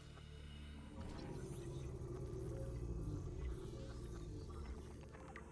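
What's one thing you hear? A handheld scanner whirs while scanning.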